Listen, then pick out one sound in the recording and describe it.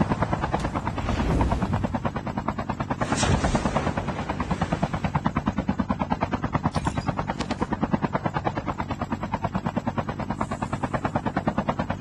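A helicopter's rotor blades thump rapidly and steadily.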